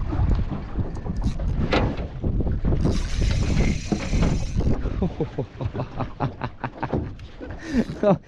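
Water laps against the side of a small boat.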